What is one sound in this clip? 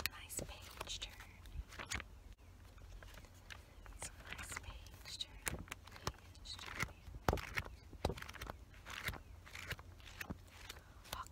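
Glossy pages rustle and flap.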